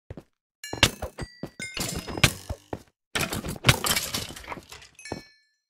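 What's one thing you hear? A sword strikes a bony creature with quick, sharp hits.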